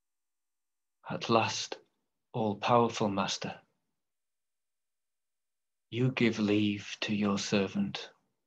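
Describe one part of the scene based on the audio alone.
A middle-aged man speaks calmly through a microphone on an online call, reading out slowly with pauses.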